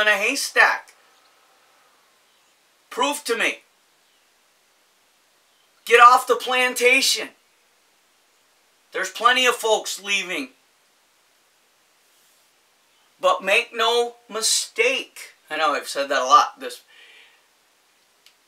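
A middle-aged man talks calmly and close by, with pauses between his phrases.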